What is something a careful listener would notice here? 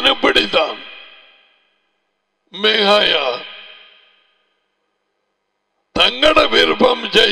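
An elderly man speaks with animation into a close microphone, in short bursts with pauses.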